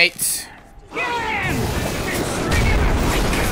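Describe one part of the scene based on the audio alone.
A rocket launcher fires with a loud whoosh.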